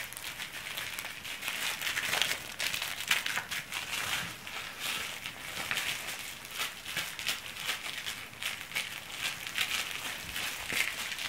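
A small dog tugs and shakes a plush toy with a soft rustling.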